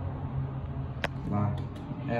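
A button clicks as a finger presses it.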